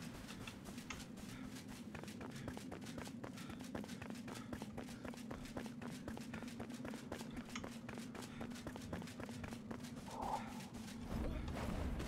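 Footsteps tread quickly and steadily over the ground.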